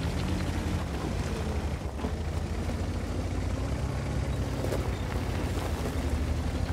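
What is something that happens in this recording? Tank tracks clatter over rough ground.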